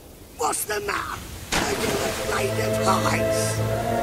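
A body splashes into water.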